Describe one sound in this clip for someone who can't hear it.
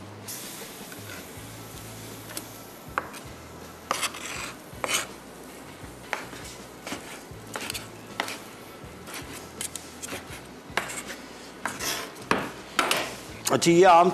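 A knife chops on a wooden board with sharp knocks.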